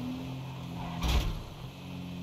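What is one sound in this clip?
A car crashes hard into a barrier.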